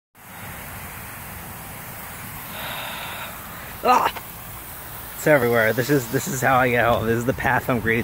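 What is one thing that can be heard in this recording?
Lawn sprinklers hiss and spray water steadily outdoors.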